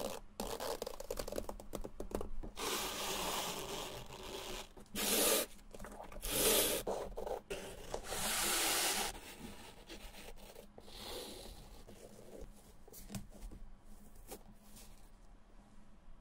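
Shoelaces rustle and slide against a shoe.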